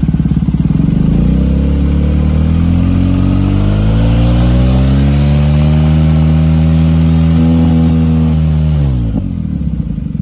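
A motorcycle engine revs up, holds, and then drops back down.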